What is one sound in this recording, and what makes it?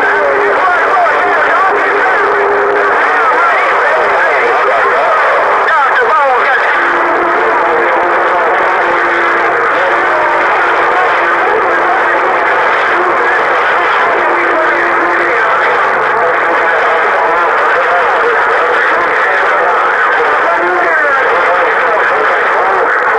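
Warbling whistles and squeals drift in and out of the radio static.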